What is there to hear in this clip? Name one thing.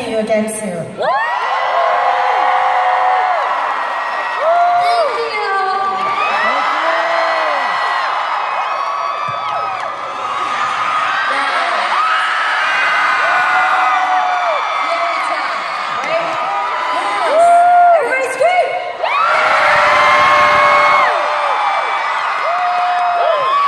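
A large crowd screams and cheers loudly.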